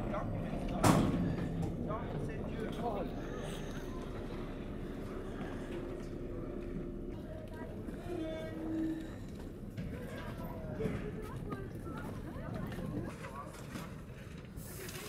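A crowd of people walks past.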